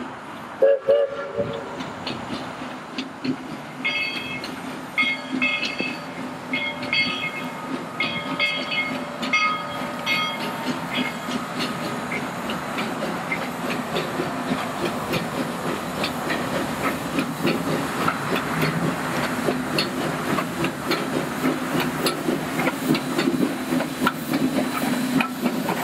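A steam locomotive chuffs steadily, growing louder as it approaches.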